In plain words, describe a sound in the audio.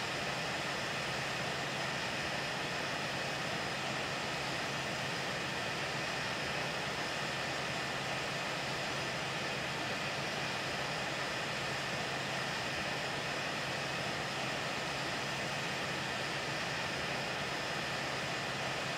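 The jet engines of an airliner roar steadily in flight.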